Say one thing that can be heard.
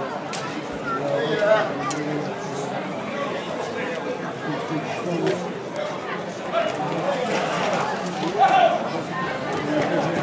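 People in a crowd shout and cheer excitedly.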